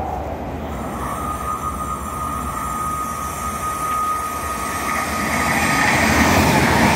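A second train approaches at speed with a rising roar and a whining tone.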